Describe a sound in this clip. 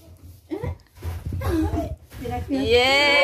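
A young woman blows out a candle with a short puff.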